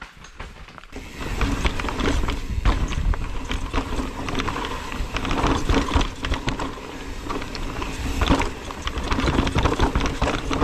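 A bike's chain and frame clatter over bumps.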